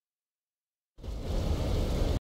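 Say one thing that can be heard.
Stormy waves crash and rumble.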